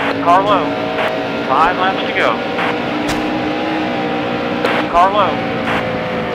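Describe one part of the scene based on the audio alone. Other race cars roar past close by.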